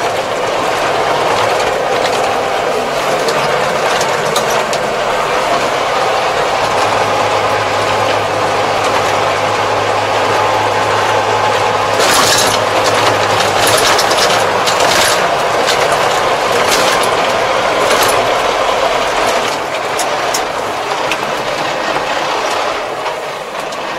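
A tractor engine rumbles steadily from inside the cab.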